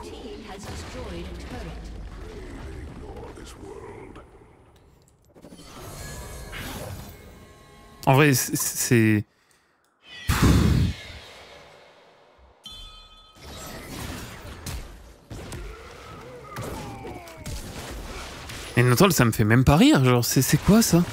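Game sound effects whoosh and clash.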